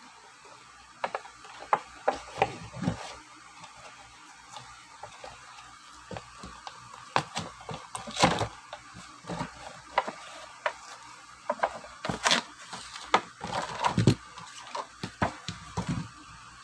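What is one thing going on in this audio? Hands crinkle and crackle a plastic blister pack.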